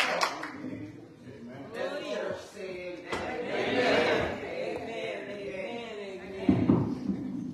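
A woman speaks into a microphone, heard through loudspeakers in a large room.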